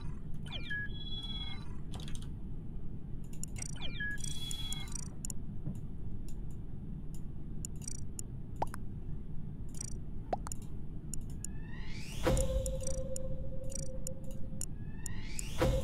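Electronic menu chimes and blips play.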